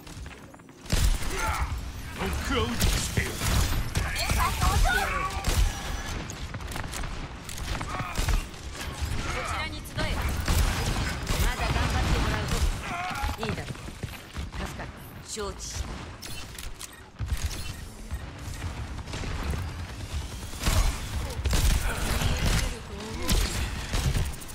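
A rifle fires sharp shots in bursts.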